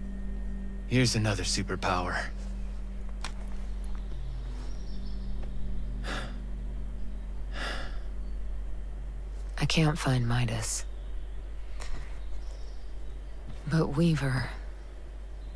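A woman speaks calmly and quietly, close by.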